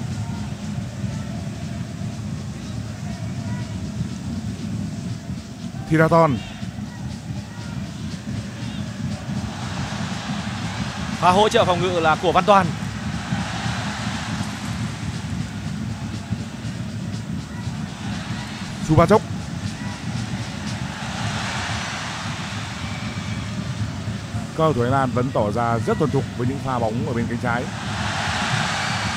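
A large crowd roars steadily in an open stadium.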